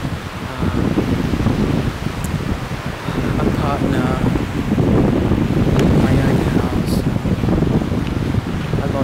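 Wind blusters loudly across a microphone outdoors.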